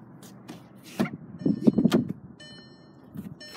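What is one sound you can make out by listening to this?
A car door unlatches and swings open.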